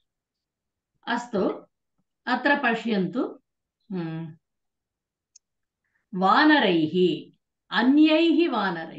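A woman recites verses slowly through an online call.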